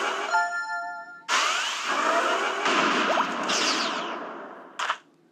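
Bright game chimes ring out, followed by loud crashing attack effects.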